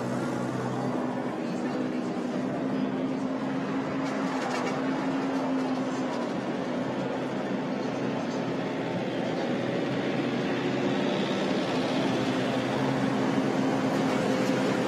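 A tractor engine hums steadily in the distance.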